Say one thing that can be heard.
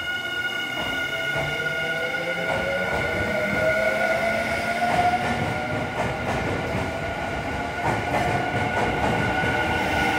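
Train wheels clatter over the rail joints as the train speeds up.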